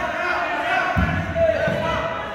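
Wrestlers thud onto a padded mat.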